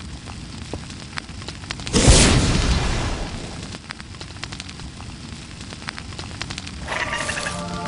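A fire crackles in a hearth.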